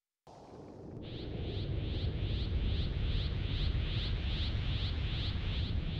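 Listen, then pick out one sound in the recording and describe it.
A crackling energy aura hums and pulses steadily.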